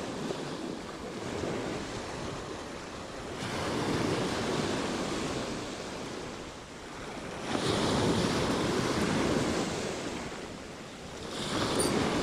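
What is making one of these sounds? Waves break and wash over pebbles close by, outdoors in wind.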